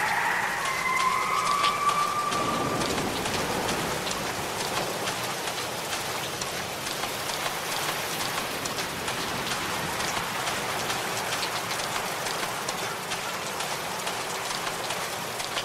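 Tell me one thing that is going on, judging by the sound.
Footsteps walk steadily on a hard path.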